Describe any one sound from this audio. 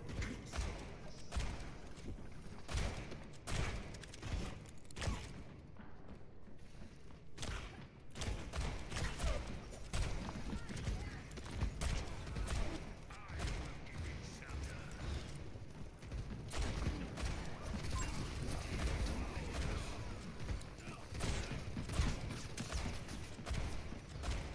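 A heavy gun fires in rapid bursts with explosive blasts.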